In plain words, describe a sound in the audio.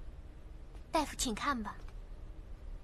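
A man speaks briefly with an exclamation.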